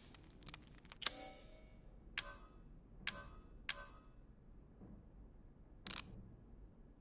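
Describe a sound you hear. Short menu clicks and chimes sound several times.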